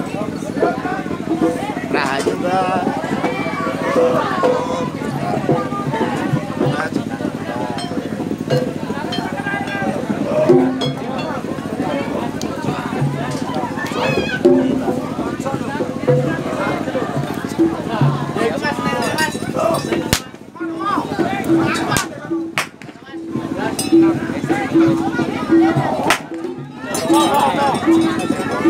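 A crowd of men chatters and calls out nearby.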